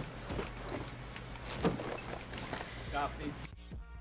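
A wooden door opens.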